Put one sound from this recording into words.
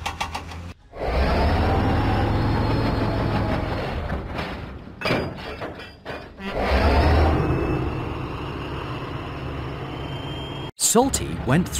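A diesel engine rumbles and chugs as it pulls wagons along.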